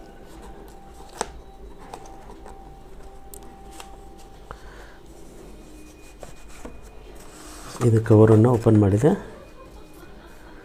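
Cardboard packaging rustles and scrapes as hands open a box.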